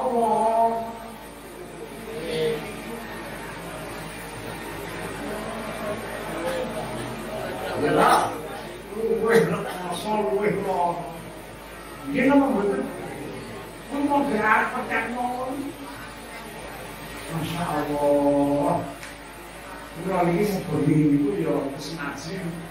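An elderly man speaks slowly into a microphone, heard through loudspeakers in an echoing hall.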